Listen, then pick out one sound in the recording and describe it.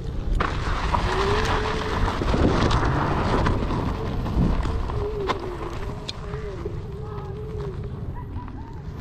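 An electric motor whines, rising and falling in pitch as it strains uphill.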